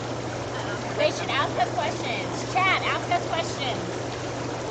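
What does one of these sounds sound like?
Young women talk and laugh with animation nearby.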